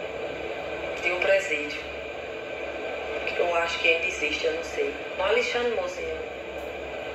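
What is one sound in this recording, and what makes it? A woman speaks calmly, heard through a loudspeaker.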